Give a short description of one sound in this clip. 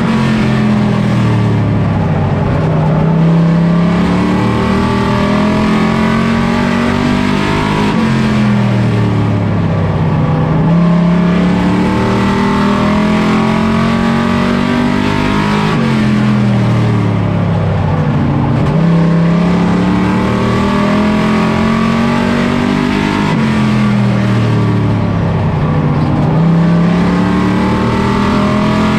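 A race car engine roars loudly from inside the car, revving down into each turn and climbing again on the straights.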